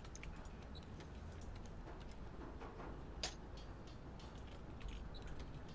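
Soft interface clicks sound in quick succession.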